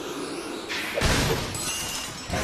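A wooden crate bursts apart with a loud crash.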